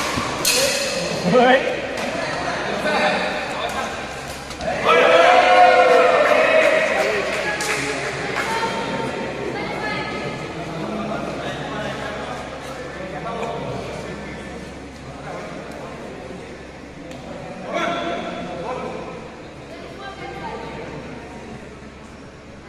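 Men shout and call out nearby with animation.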